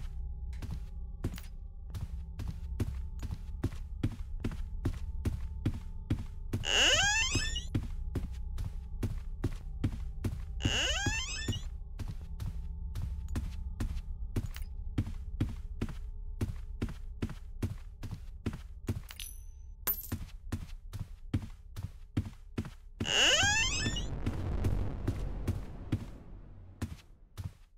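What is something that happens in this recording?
Footsteps thud at a quick, steady pace.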